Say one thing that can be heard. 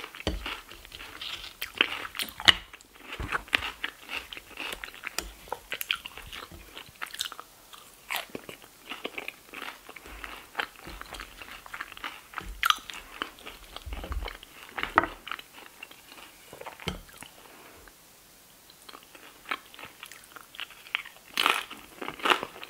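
A woman chews crunchy food with wet smacking sounds close to a microphone.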